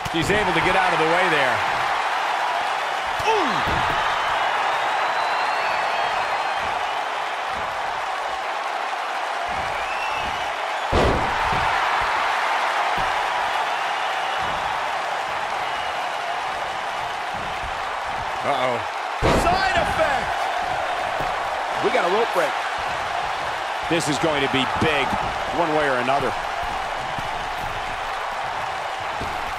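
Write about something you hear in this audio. A large crowd cheers and roars in an arena.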